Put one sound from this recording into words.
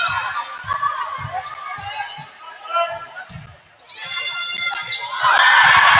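A volleyball is struck with dull thumps in a large echoing gym.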